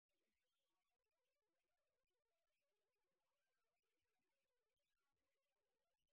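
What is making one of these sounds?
Men and women murmur and chat at a distance in a large hall.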